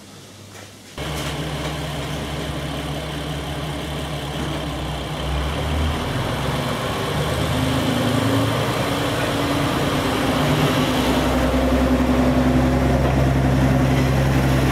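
A diesel train engine idles with a deep, steady rumble that grows louder.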